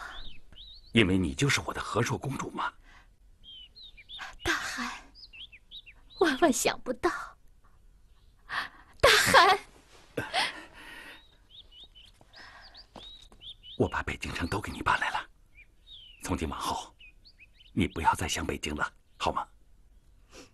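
A middle-aged man speaks firmly, close by.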